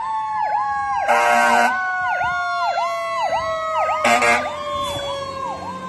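A fire truck's air horn blares in short blasts.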